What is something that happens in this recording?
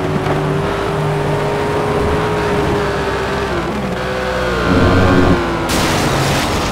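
A sports car engine roars as it speeds along.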